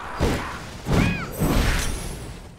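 An explosion bursts with a loud crack.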